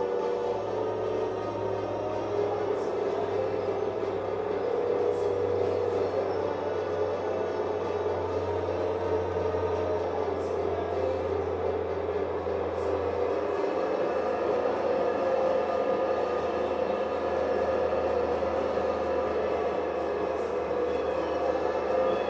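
A tractor engine drones steadily through a television speaker.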